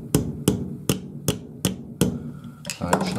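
A hammer strikes metal in sharp, evenly spaced blows.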